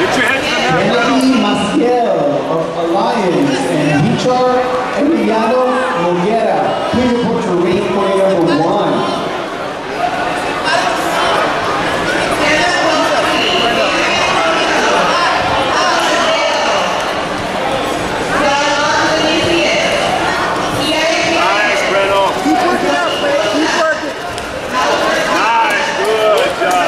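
Men shout in a large echoing hall.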